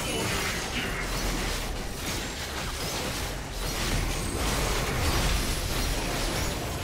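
Magic spells blast and crackle in a fierce battle.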